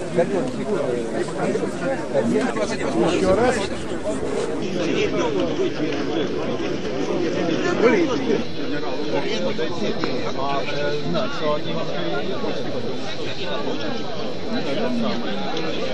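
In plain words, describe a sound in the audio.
Several elderly men talk with each other close by outdoors.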